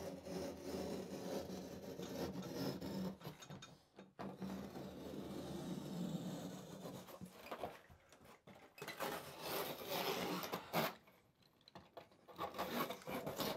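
A man rubs a foam board against a wall with a soft scraping.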